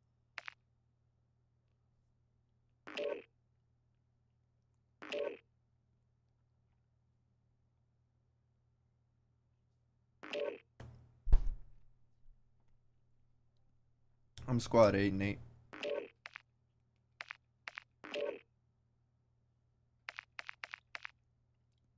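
Short electronic menu chimes sound now and then.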